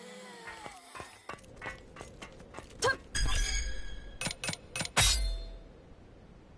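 A sword swishes through the air in quick, sharp strokes.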